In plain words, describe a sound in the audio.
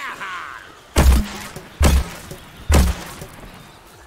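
A toy-like blaster fires several loud, booming shots.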